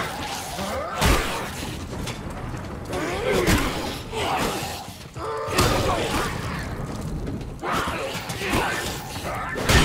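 Heavy blows and stabs land with wet thuds.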